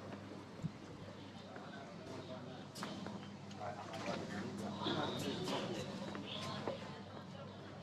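A man and a woman talk quietly nearby.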